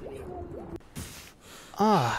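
Water sloshes and splashes as a swimmer breaks the surface.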